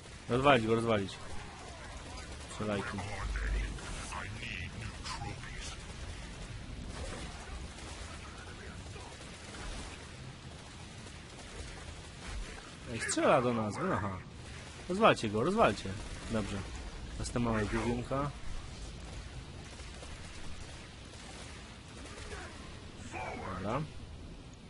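Laser turrets fire steadily in a game.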